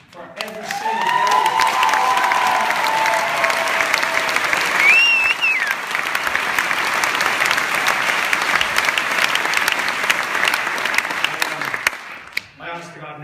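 An audience cheers and applauds loudly in a large hall.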